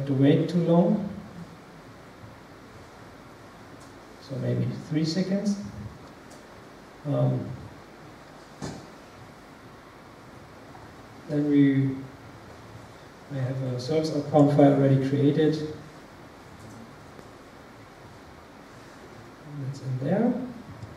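A man speaks calmly in short phrases through a microphone in a large room.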